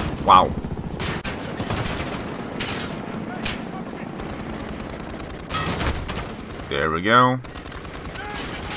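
A rifle fires several shots.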